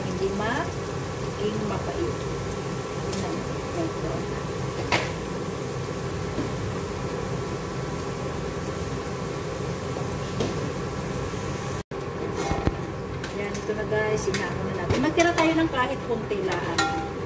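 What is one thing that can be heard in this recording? Rice sizzles and crackles in a hot pot.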